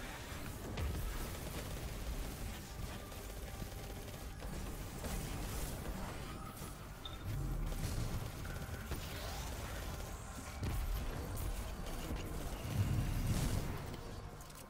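Explosions thud and rumble.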